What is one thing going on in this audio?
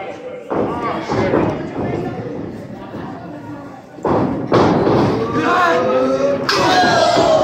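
A small crowd cheers and shouts nearby, indoors.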